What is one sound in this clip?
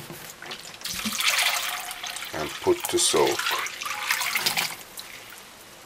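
Water pours into a glass bowl.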